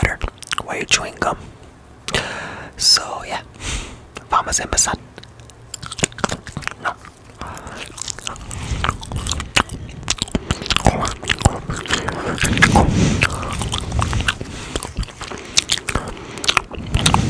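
A young man whispers softly, very close to a microphone.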